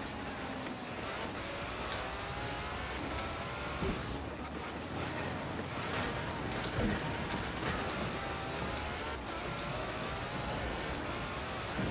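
Tyres hiss and crunch through snow.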